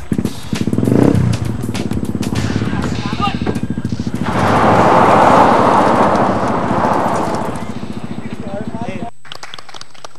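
A car engine revs as the car drives off over gravel.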